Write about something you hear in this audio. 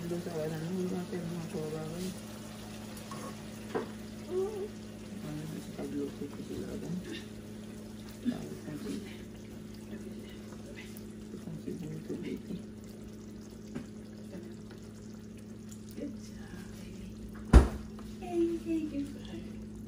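A metal ladle clinks against a bowl.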